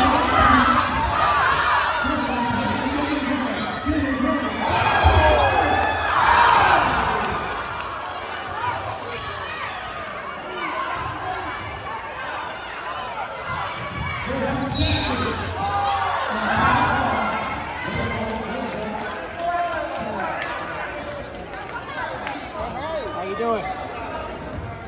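A crowd of spectators chatters and cheers loudly in a large echoing gym.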